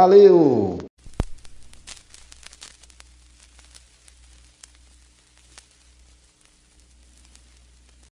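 A record player's stylus crackles and pops on a spinning record.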